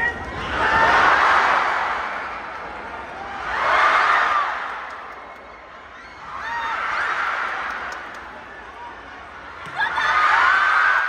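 A large crowd cheers and shouts in waves in an echoing arena.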